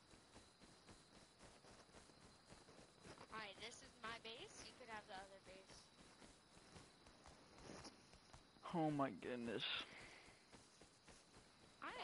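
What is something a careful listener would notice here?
Footsteps crunch steadily through grass.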